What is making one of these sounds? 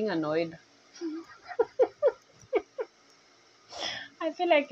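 A young woman laughs heartily.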